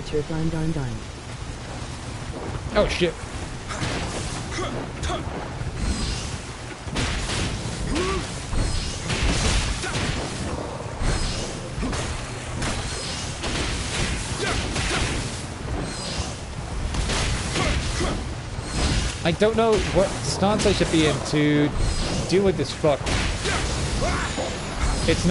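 Swords clash and slash repeatedly in a fight.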